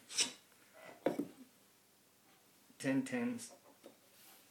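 Wooden tiles tap and slide across a tabletop.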